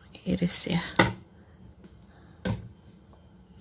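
A metal baking pan knocks down onto a cutting board.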